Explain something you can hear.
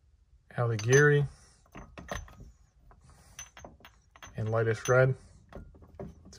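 Glass bottles clink softly against each other.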